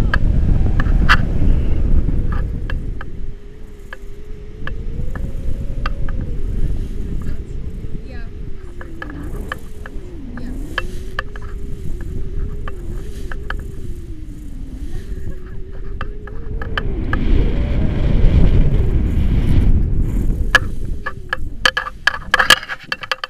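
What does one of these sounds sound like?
Wind rushes and buffets loudly against a microphone.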